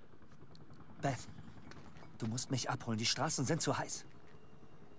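A young man speaks quietly and tensely.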